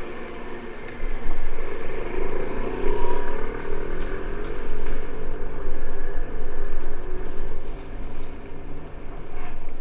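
Bicycle tyres rumble loudly over brick paving.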